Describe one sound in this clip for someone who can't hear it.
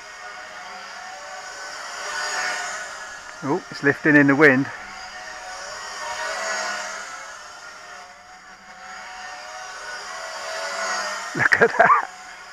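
A model plane's motor whines overhead, swelling and fading as it passes by again and again.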